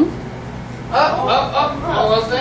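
A child answers in a young voice.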